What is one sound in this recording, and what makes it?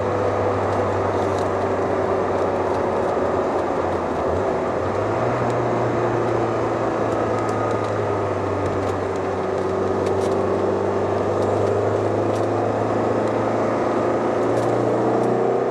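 Tyres roll on smooth asphalt with a constant roar.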